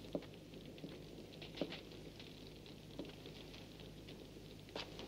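Footsteps knock slowly on a wooden floor.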